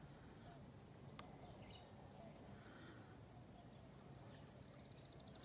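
Wind rumbles steadily outdoors over open water.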